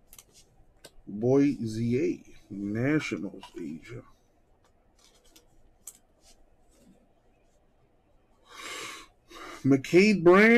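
Trading cards in plastic sleeves rustle and click in hands.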